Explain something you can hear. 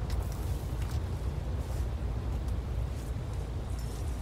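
Soft footsteps shuffle along a ledge.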